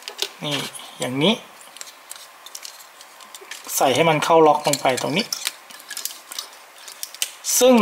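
Small plastic parts click and snap together as a toy figure is fitted.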